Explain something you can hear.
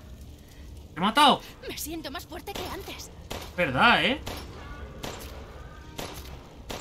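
Gunshots ring out sharply several times.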